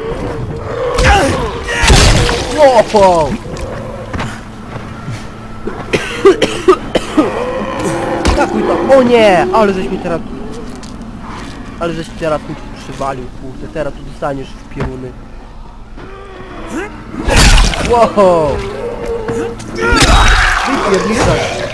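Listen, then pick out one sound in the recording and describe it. An axe strikes a body with heavy, wet thuds.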